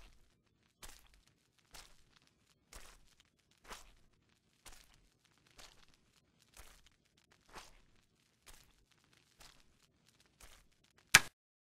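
Slow, heavy footsteps echo in a cave.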